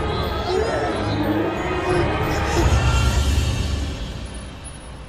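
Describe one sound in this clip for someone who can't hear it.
A young girl sobs and whimpers close by.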